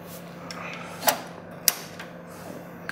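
A plastic drive tray clicks into a bay.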